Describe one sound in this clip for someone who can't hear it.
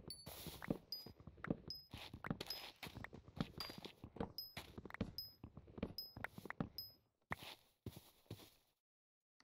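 An axe chops wood with rapid, repeated knocks.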